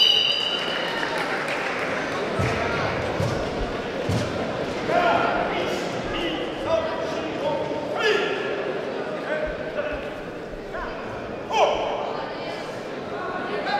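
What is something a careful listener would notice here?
A man calls out commands loudly.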